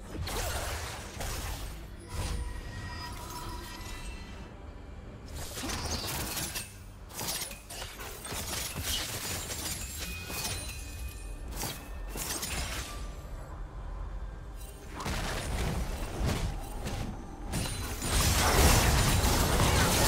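Magic blasts and weapon hits crackle and thud in a fast game fight, loudest near the end.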